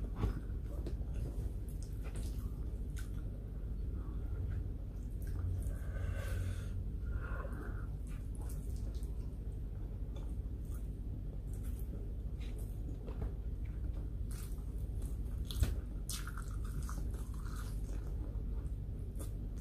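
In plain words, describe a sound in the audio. Food crackles and rustles between a woman's fingers.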